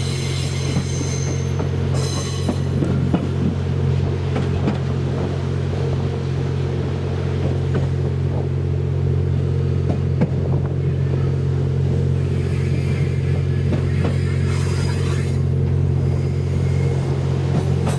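A train's motor hums steadily as it rolls along.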